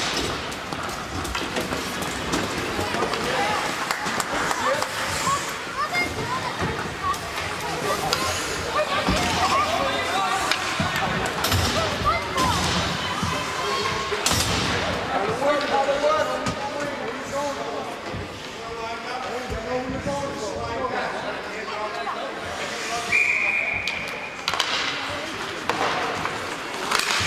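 Hockey skates scrape and carve across ice in an echoing rink.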